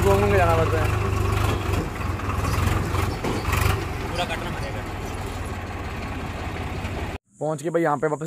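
A tractor engine chugs steadily and loudly close by.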